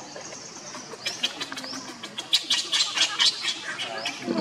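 Leaves rustle and twigs crackle as a monkey moves about.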